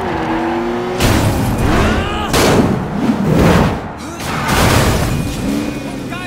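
Heavy crashing thuds ring out.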